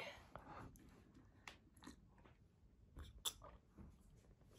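A young person sips and gulps a drink.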